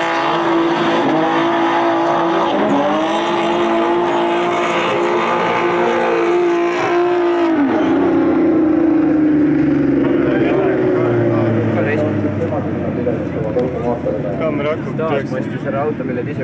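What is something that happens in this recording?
Race car engines roar loudly and rev up and down.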